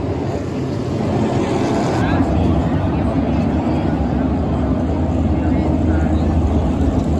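Race car engines roar loudly as cars speed past on a track.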